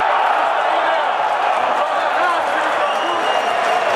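A boot strikes a football.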